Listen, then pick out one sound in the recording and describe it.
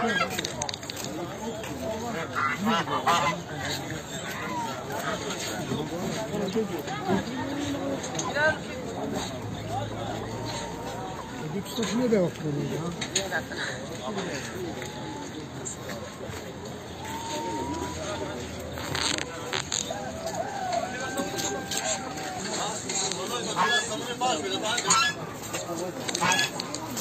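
Several men talk among themselves nearby, outdoors.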